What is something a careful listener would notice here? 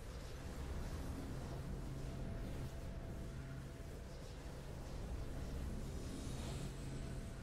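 Triumphant game music plays with a rich orchestral sound.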